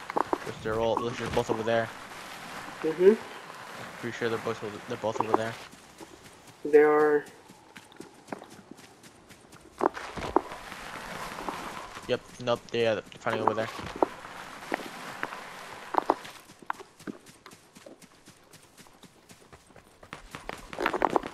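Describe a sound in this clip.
Footsteps patter quickly over grass and dirt.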